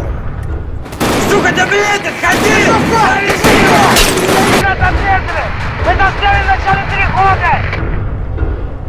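A man shouts urgently over a radio headset.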